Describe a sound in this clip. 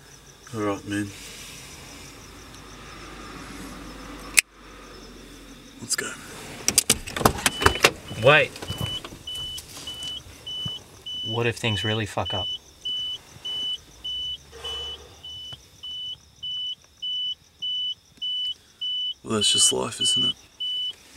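A man talks in a low voice close by.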